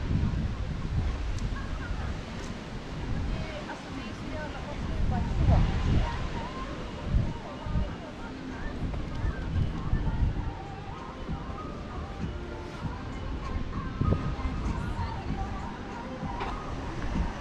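Footsteps tap on pavement while walking.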